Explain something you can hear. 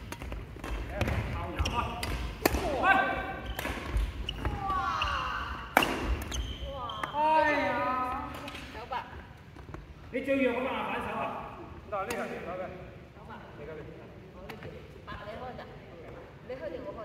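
Adults talk and call out across an echoing hall.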